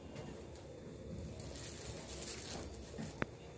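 Fabric rustles softly as hands smooth it flat.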